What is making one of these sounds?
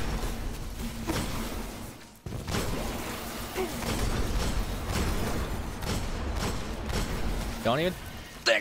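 Video game gunfire and energy blasts crackle and boom.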